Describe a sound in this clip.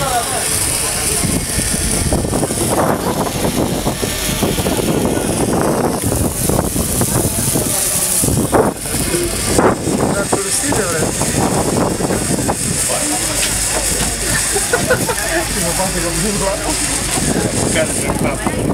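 A hand-held flare burns with a steady hiss and fizz.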